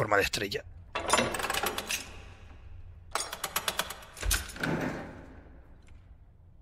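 A heavy metal lever creaks and clanks as it is pulled down.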